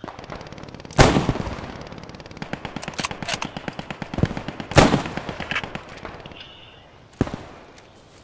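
A rifle fires sharp shots that echo across open ground.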